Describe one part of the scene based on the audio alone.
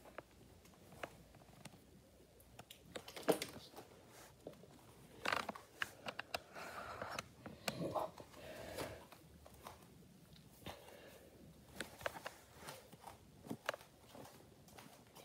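Fingers bump and rub against the microphone.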